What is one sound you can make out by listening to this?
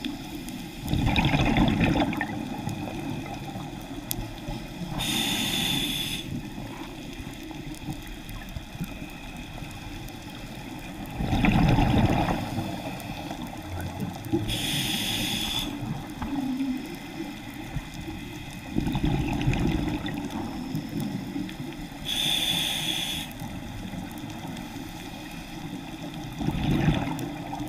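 A diver's exhaled bubbles gurgle and rumble loudly underwater, in bursts.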